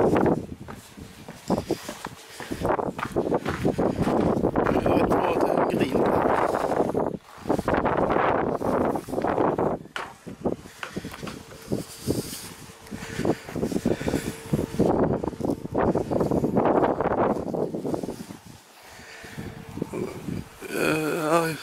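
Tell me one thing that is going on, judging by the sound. Strong wind gusts roar and buffet outdoors.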